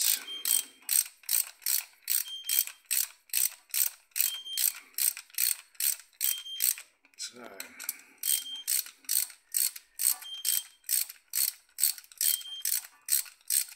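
A ratchet wrench clicks rapidly and steadily.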